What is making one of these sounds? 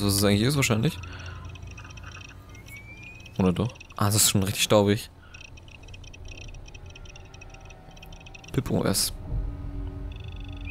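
An electronic device hums and chirps steadily as it starts up.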